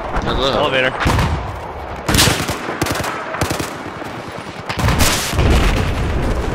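Rifle shots crack loudly, a few at a time.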